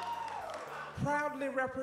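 A woman speaks loudly into a microphone over a loudspeaker.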